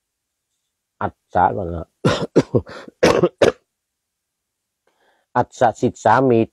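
An elderly man speaks calmly and closely into a microphone, pausing between phrases.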